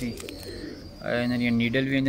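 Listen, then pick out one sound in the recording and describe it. Plastic-wrapped packets rustle in a hand.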